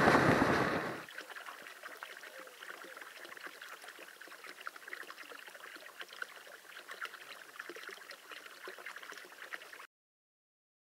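Water pours from a pipe and splashes softly into a trough.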